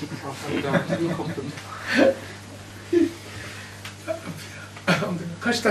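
An elderly man laughs into a microphone.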